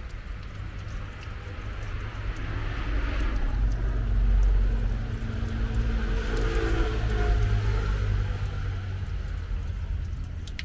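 A thin stream of water splashes steadily into a stone basin close by.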